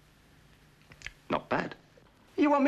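A man speaks with surprise nearby.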